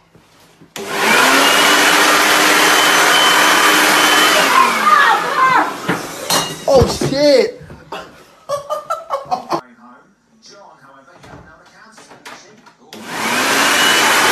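An electric leaf blower roars at full power.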